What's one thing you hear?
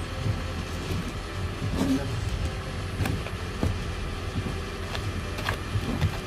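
A snow brush scrapes snow off a car windscreen.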